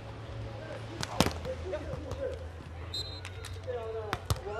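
A volleyball is struck hard with a hand.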